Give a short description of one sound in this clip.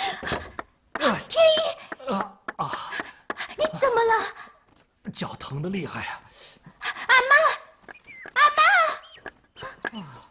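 A young woman speaks anxiously close by.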